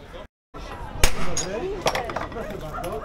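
A hammer strikes metal with sharp ringing blows.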